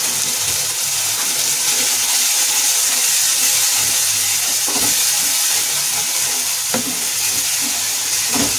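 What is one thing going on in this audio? A wooden spoon scrapes against a metal pan.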